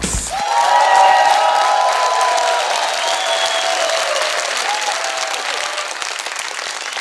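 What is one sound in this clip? A large crowd cheers and whistles loudly in a big hall.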